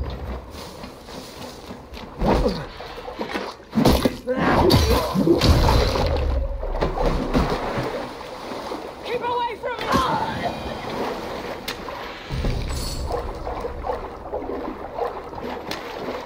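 Water splashes as a figure wades through it.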